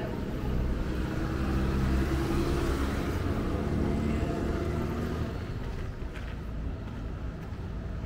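A truck engine drones as the truck passes close by.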